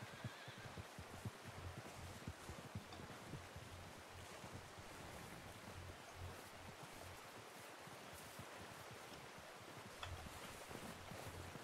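Footsteps crunch steadily through deep snow.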